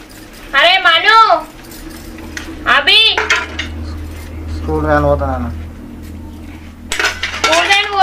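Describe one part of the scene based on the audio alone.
Metal dishes clink as they are washed.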